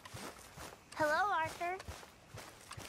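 A young boy answers in a high voice.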